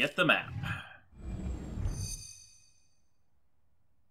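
A stone pedestal lights up with a bright chime.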